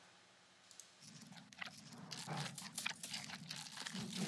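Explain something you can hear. A panda munches on bamboo with soft crunching.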